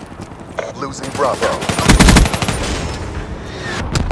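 Rapid gunfire bursts out from an automatic rifle.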